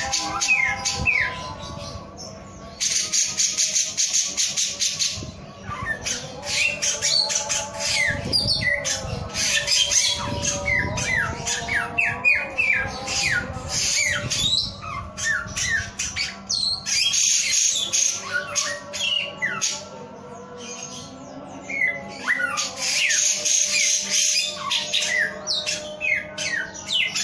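A small songbird sings a loud, rapid, chirping song close by.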